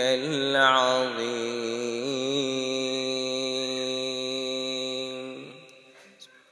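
An elderly man chants in a long, melodic voice through a microphone, echoing in a large hall.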